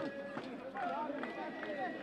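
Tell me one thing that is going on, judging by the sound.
A man shouts instructions from the sideline.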